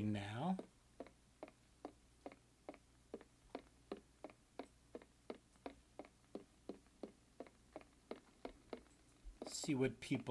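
Footsteps walk steadily across a stone floor.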